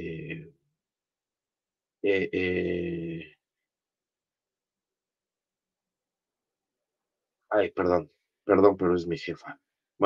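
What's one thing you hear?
A middle-aged man speaks calmly into a headset microphone, in short bursts with pauses.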